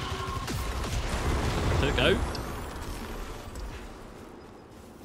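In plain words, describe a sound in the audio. Energy weapons fire in rapid bursts with loud crackling blasts.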